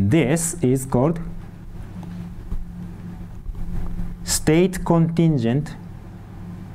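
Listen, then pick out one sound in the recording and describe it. A man speaks calmly through a microphone, as if giving a lecture.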